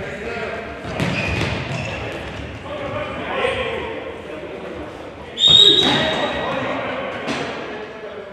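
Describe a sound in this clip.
A ball thuds as players kick it in a large echoing hall.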